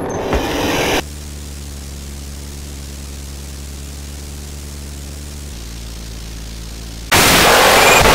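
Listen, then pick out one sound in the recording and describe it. A low, eerie growl drones steadily and then cuts off.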